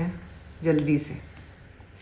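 A woman speaks briefly nearby.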